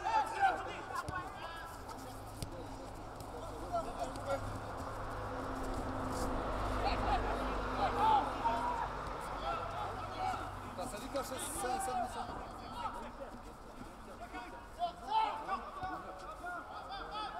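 Players shout to each other across an outdoor pitch.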